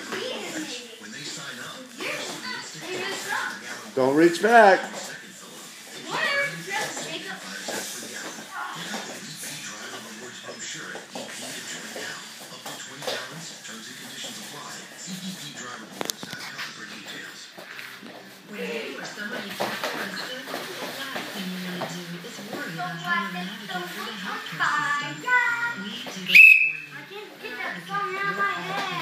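Young boys shout and call out nearby in an echoing room.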